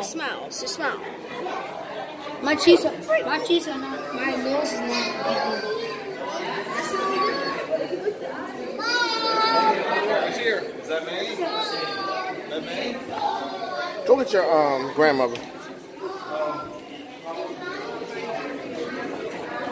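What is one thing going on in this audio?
Children talk and shout excitedly close by.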